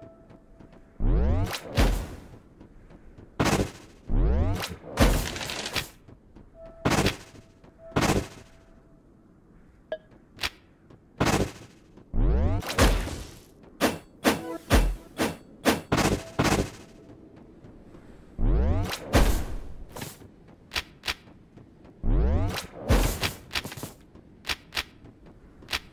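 Magic blasts whoosh and crack in short bursts.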